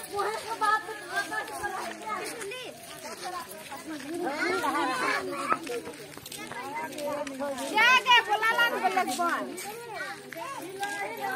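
Women chatter and call out nearby.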